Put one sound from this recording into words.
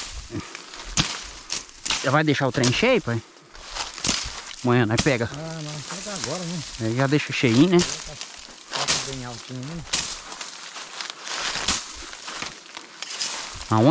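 Dry grass and leaves rustle and crunch underfoot.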